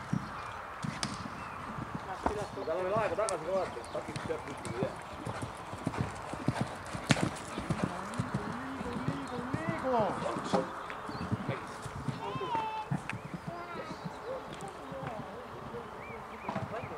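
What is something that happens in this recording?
A horse's hooves thud on soft sand at a canter.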